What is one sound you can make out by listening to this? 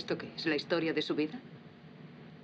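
A woman speaks with animation, close by.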